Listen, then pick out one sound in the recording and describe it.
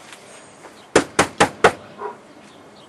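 A man knocks on a door.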